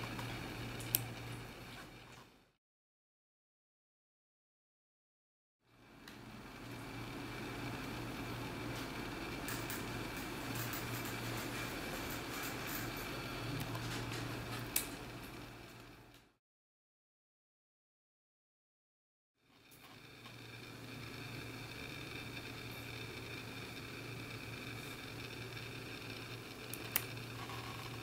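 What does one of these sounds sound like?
Small clippers snip sharply.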